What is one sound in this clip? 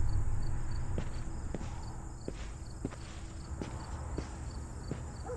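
Footsteps crunch slowly on a dirt path.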